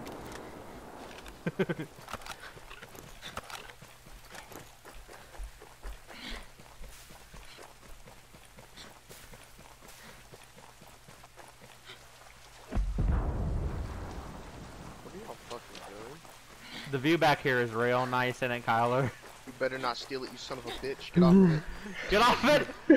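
Footsteps patter quickly over grass and gravel.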